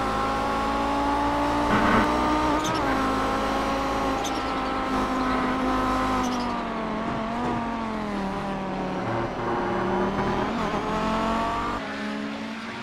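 A racing car engine roars loudly at high revs, its pitch rising and falling with gear changes.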